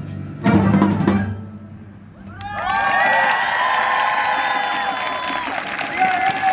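An orchestra plays outdoors in loud chords and long held notes.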